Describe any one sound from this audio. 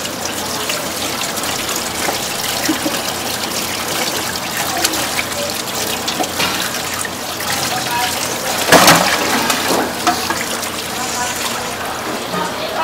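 Tap water runs and splashes into a basin.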